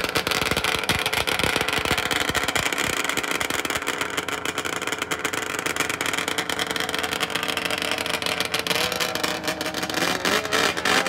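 A snowmobile engine idles close by.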